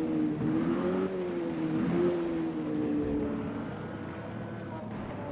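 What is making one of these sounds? Water splashes and sprays.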